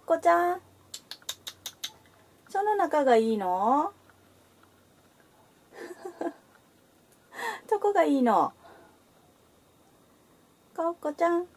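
A cat meows loudly and repeatedly, close by.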